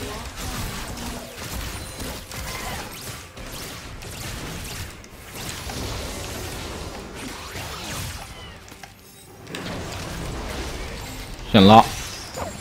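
Video game spell effects and hits sound in quick bursts.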